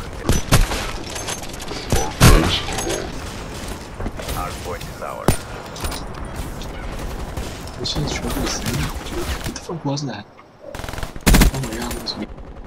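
Sniper rifle shots ring out loudly.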